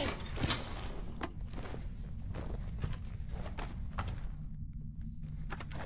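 Heavy metal armour clanks and whirs.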